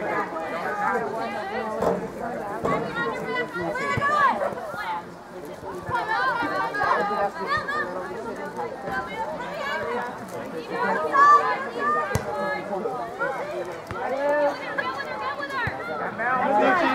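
A crowd of spectators chatters and calls out nearby outdoors.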